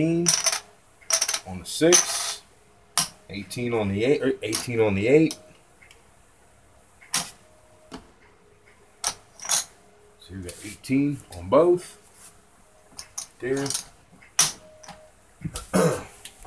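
Casino chips click and clack as they are stacked and moved.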